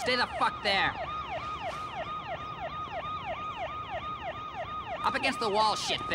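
A police siren wails in rapid, repeating whoops.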